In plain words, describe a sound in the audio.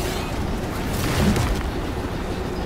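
A heavy body thuds in a violent struggle.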